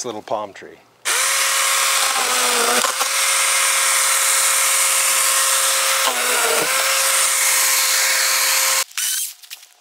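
A power saw whines steadily.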